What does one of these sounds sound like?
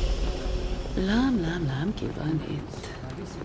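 A man speaks in a low, close voice.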